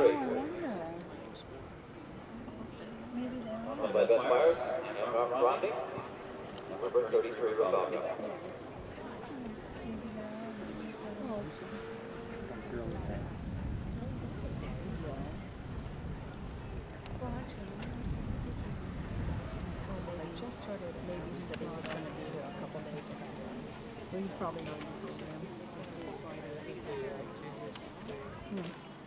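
A horse trots with soft thuds of hooves on sand.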